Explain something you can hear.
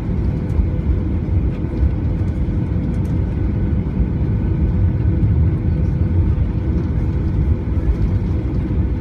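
Landing gear rumbles and thumps over the ground.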